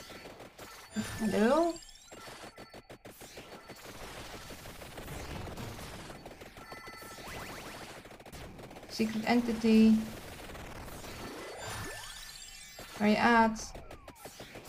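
A bright rising chime jingle plays several times.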